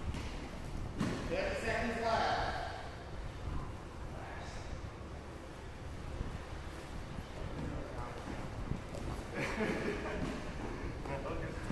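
A man talks in a large echoing hall.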